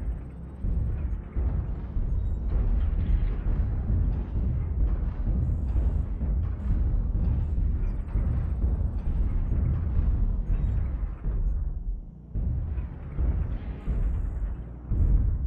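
A heavy machine rumbles deeply and steadily.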